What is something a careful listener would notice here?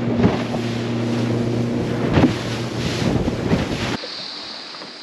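A boat motor hums steadily.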